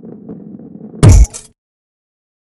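A ball lands with a loud thud.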